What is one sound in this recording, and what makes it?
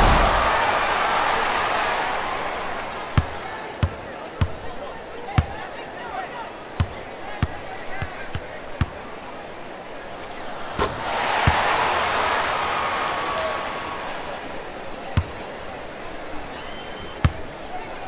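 A large crowd cheers and roars in an arena, swelling and fading.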